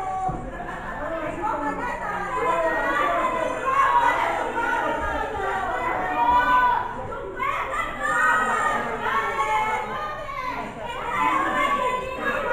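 A crowd of spectators chatters and shouts throughout, in an echoing hall.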